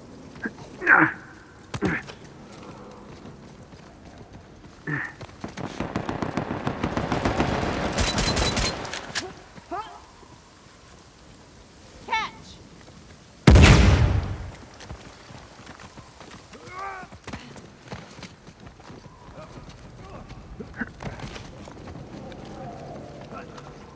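Footsteps patter on rocky ground.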